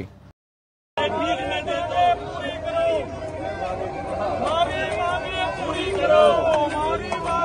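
Several men talk loudly over one another outdoors.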